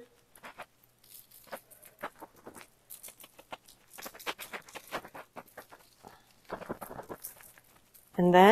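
A spice grinder clicks and crunches in quick bursts.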